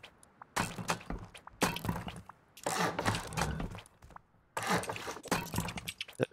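A hammer strikes stone over and over.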